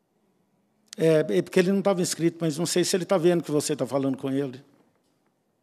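A man speaks calmly through a loudspeaker over an online call.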